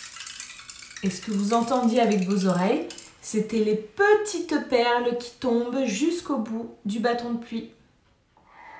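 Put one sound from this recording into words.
A woman speaks warmly and animatedly close by.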